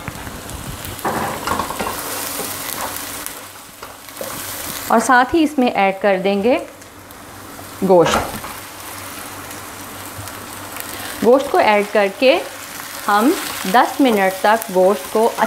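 Onions sizzle in a hot pan.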